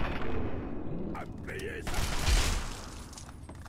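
Gunfire blasts loudly.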